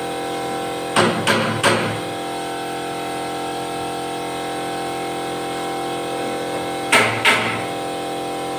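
Sharp knocks strike a wooden board in quick bursts.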